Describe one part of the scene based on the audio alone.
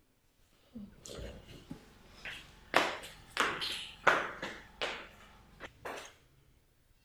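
Footsteps cross a hard floor.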